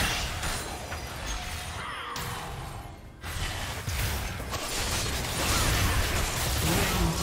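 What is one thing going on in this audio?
Game combat sounds of spells and strikes crackle and burst.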